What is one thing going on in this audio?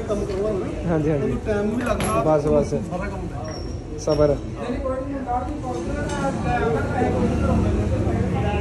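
Metal tools clink against a motorcycle engine.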